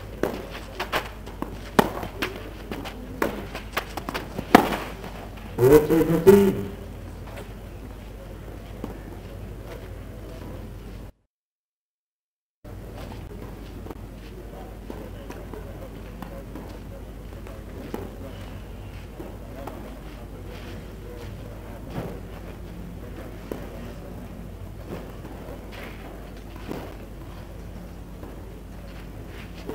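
A tennis ball is hit with a racket.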